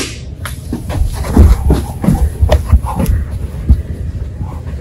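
Footsteps thud heavily on a carpeted floor.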